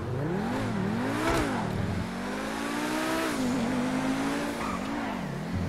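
A sports car engine revs up and down at high speed.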